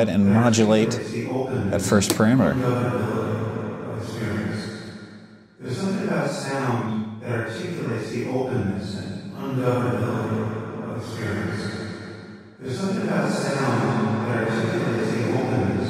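Electronic synthesizer notes play with a long echoing reverb, swelling and fading in waves.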